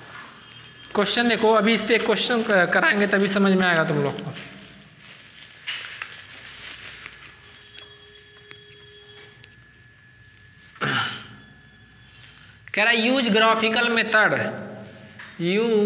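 A man speaks calmly and clearly, as if teaching, in a slightly echoing room.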